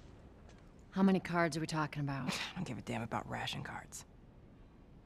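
A woman asks a question in a calm voice.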